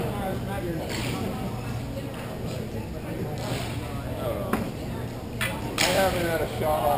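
Hockey sticks clack against a puck in the distance, echoing.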